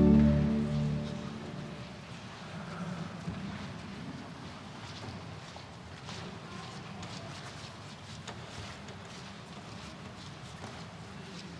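A crowd murmurs and shuffles about in a large echoing hall.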